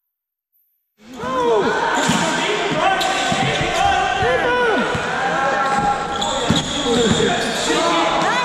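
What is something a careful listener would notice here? A basketball bounces on the hard floor.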